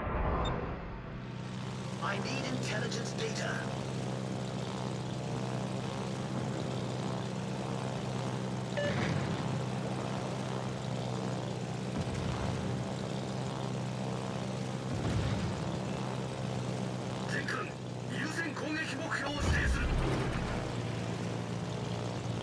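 Propeller aircraft engines drone steadily overhead.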